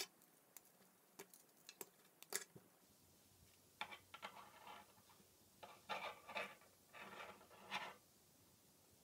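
Plastic pieces click and snap together.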